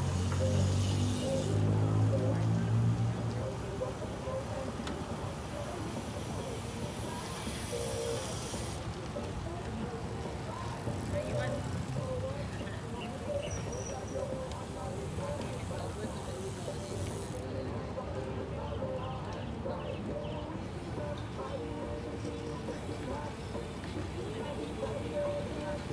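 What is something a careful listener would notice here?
Bicycles whir past on a paved road.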